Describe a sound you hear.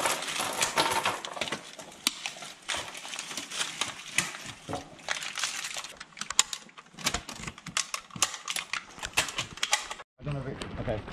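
Cartridges click and clatter as they are pressed into a rifle magazine.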